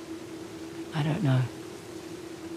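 A young woman speaks quietly and hesitantly.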